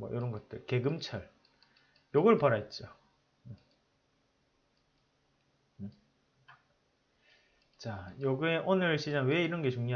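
A man speaks with animation close to a microphone, pausing between phrases.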